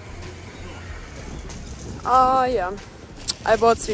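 A shopping cart rattles as it rolls over a hard floor.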